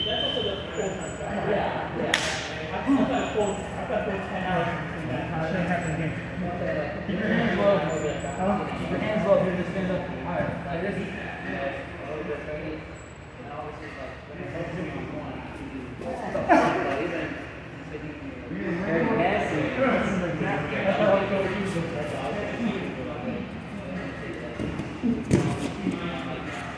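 Bare feet thump and shuffle on a padded mat.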